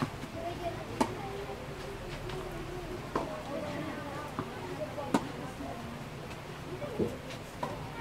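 A tennis ball is struck sharply by rackets in a rally.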